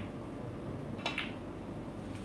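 A cue sharply strikes a ball once.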